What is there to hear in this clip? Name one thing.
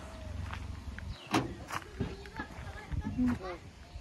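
A car boot latch clicks open.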